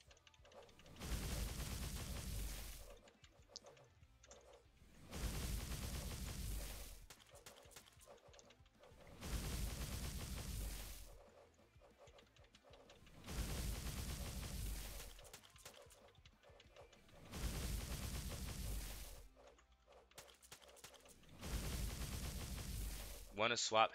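Magic blasts roar in loud, rushing bursts every few seconds.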